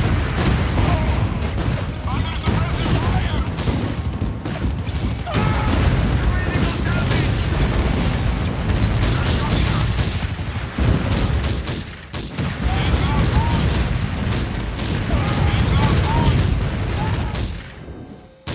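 Explosions boom and rumble over and over.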